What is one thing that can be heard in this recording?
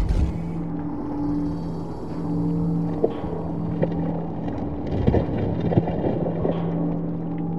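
Wet mud squelches and splashes as a body crawls through it.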